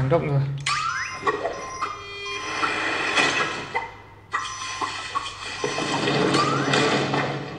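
Chiming electronic game effects and music play from a tablet speaker.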